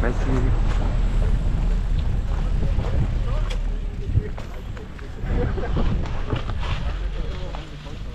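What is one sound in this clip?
Bicycle tyres roll and crunch over a rubber mat and dirt.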